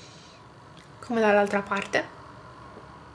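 A young woman speaks briefly and brightly close by.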